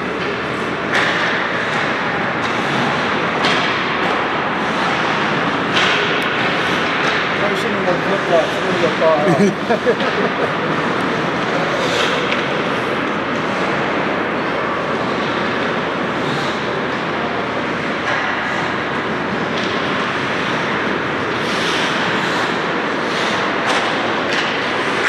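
Hockey sticks clack against the ice and a puck.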